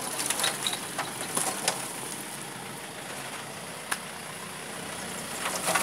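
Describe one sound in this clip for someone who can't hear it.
Stones and rubble clatter and knock.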